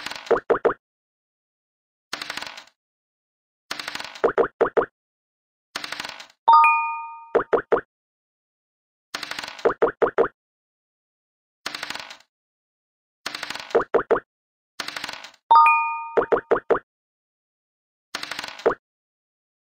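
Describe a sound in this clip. Dice rattle as they roll across a board.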